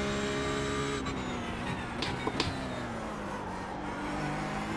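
A racing car engine drops in pitch as the car brakes and downshifts.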